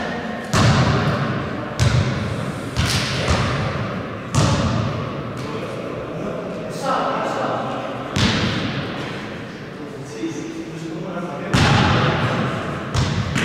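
A basketball bounces loudly on a hard floor in a large echoing hall.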